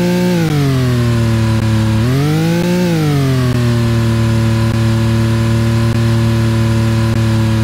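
A race car engine roars loudly, its pitch dropping, briefly rising and falling, then holding steady.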